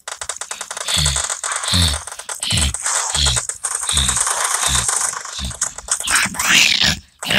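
Heavy footsteps thud quickly on hard ground.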